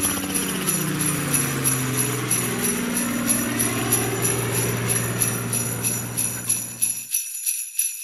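A helicopter flies overhead, its rotor thudding as it passes and fades.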